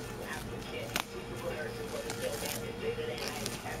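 Bubble wrap crinkles and rustles as a hand handles it.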